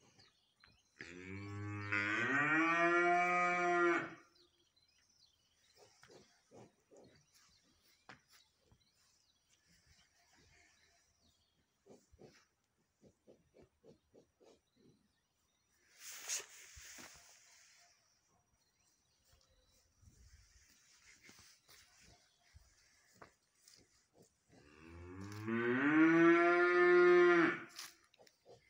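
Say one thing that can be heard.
A cow moos loudly nearby.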